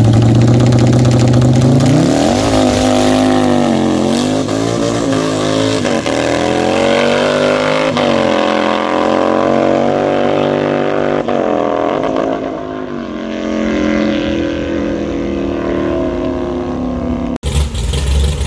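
Motorcycle engines roar and rev loudly as they accelerate away down a track.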